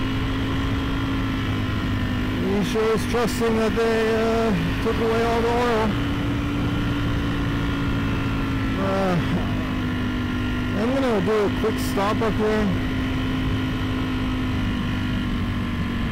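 A motorcycle engine drones steadily while riding.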